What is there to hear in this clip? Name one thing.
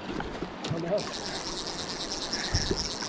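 A fishing reel clicks as line is pulled.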